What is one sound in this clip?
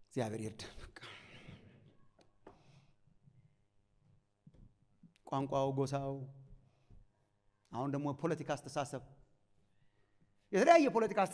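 A man preaches with animation through a microphone in an echoing hall, pausing between phrases.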